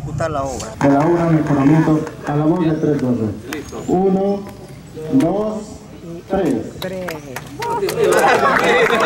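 A man speaks loudly nearby.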